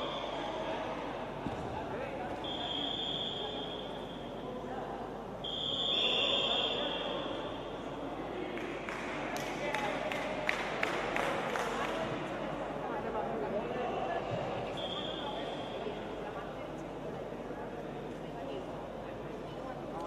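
Voices murmur and call out in a large echoing hall.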